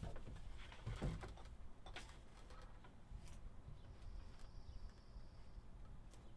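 Small objects click and rustle as a man handles them close by.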